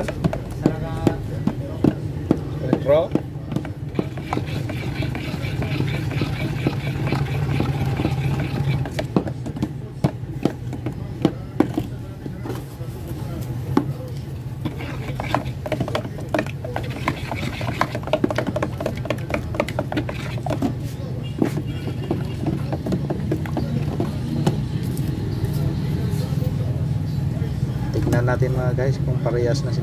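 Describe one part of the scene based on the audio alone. Sticks knock and scrape against metal cans.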